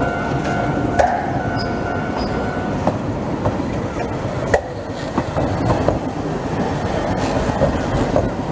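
Steel wheels clack over rail joints as a tram passes close by.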